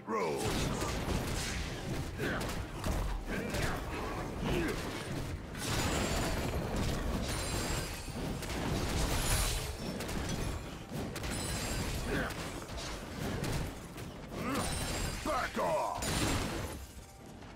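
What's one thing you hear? Game spells and weapon strikes crackle and clash in a fight.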